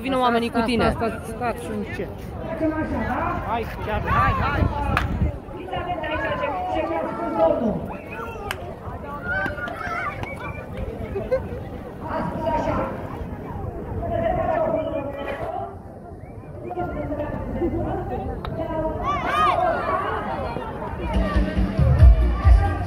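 A crowd of men and women talks and shouts close by, outdoors.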